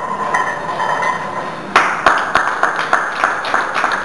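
A loaded barbell clanks down onto a rack.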